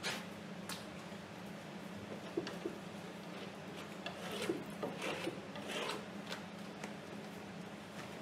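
A scraper rasps across a canvas in short strokes.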